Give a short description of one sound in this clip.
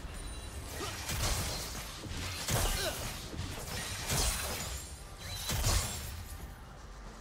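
Spell effects burst and whoosh in quick bursts.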